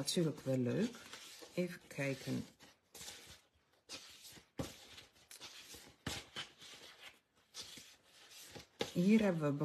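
Paper sheets rustle and flap as they are shuffled.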